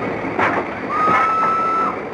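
A steam whistle blows.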